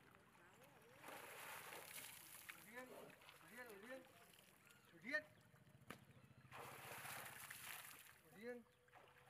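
Water splashes as an elephant sprays it from its trunk.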